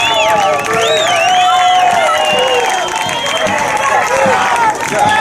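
A crowd of young men cheers and chants loudly outdoors.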